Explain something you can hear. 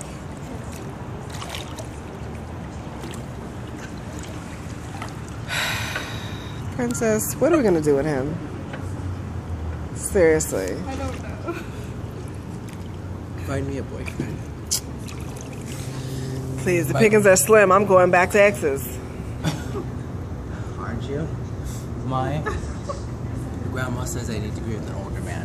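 Water splashes gently as a man swims.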